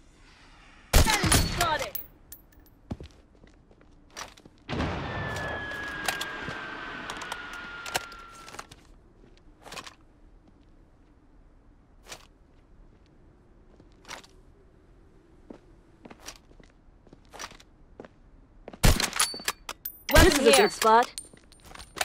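A sniper rifle fires a loud, sharp shot that echoes away.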